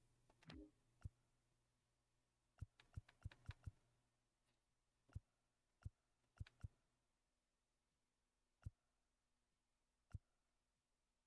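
Short, sharp menu clicks sound now and then.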